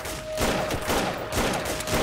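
Rifles fire sharp shots.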